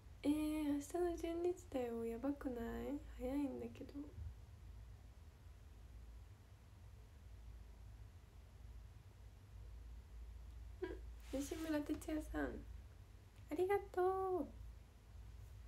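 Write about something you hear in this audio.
A young woman talks cheerfully and close up.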